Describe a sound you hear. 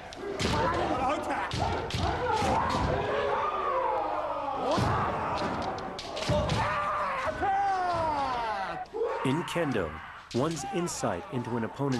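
A man shouts loudly in a large echoing hall.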